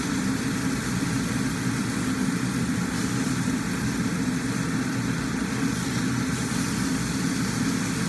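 Food sizzles and crackles in a hot pan.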